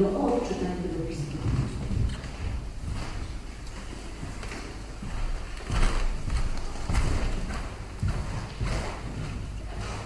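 Paper rustles and shuffles close by.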